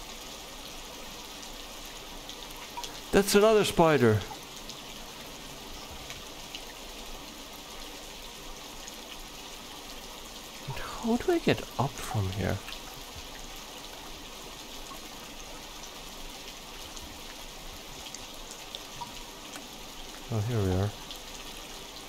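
Water pours down steadily.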